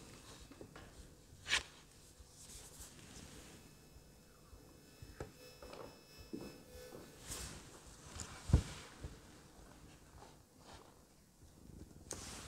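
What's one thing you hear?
Sheets of paper rustle.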